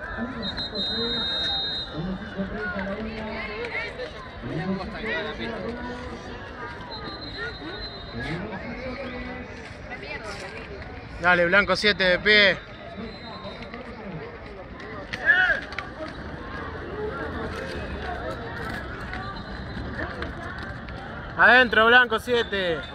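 A crowd of people talks and calls out nearby outdoors.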